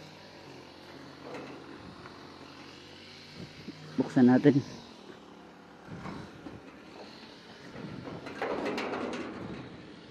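A metal gate creaks and rattles as it swings.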